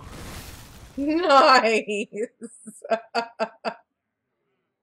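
Bright chiming tones ring out in quick bursts and fade.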